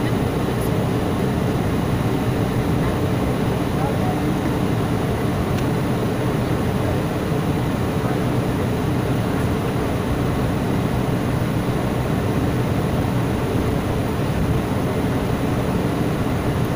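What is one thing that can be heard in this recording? Wheels rumble over a runway.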